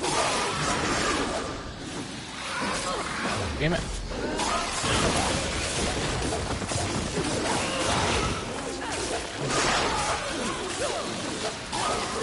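A whip chain lashes and cracks against creatures.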